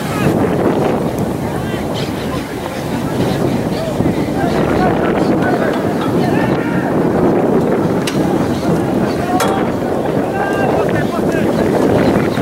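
Young men shout and call to one another outdoors on an open field.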